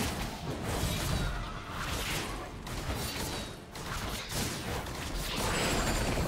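Fantasy battle sound effects whoosh and crackle.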